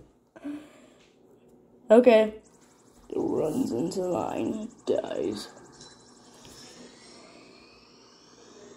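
Game sound effects play from a tablet's small speaker.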